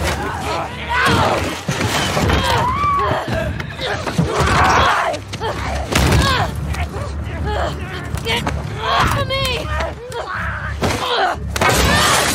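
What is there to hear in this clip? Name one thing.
A monster snarls and shrieks.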